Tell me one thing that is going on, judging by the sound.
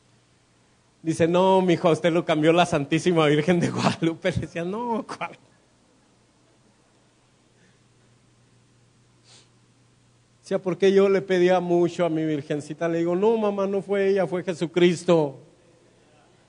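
A man speaks with feeling through a microphone and loudspeakers, in an echoing room.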